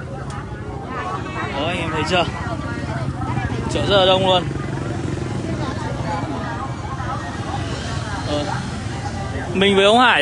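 Motorbike engines pass by.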